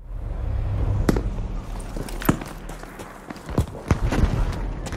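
Sharp gunshots crack close by.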